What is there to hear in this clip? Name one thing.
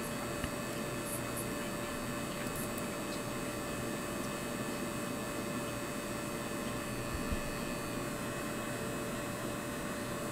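A man talks calmly into a headset microphone.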